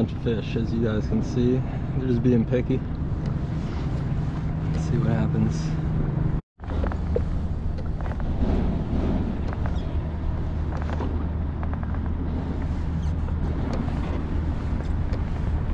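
Small waves lap gently against a boat's hull.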